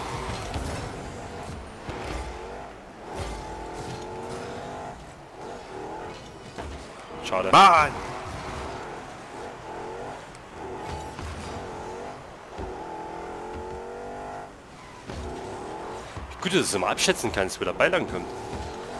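A car engine hums and revs up and down steadily.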